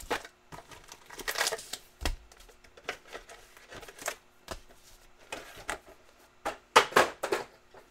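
Stacks of cards rustle and tap as hands handle them.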